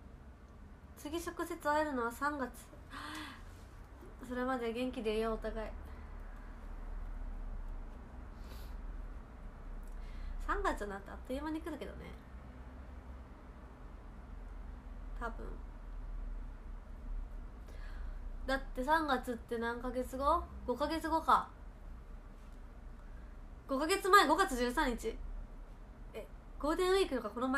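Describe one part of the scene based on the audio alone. A young woman speaks softly and calmly close by, in short bursts with pauses.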